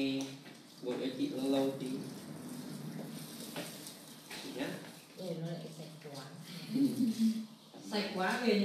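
A middle-aged woman talks animatedly close to a phone microphone.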